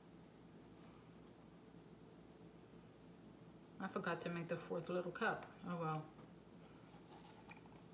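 Thick paint pours softly into a plastic cup.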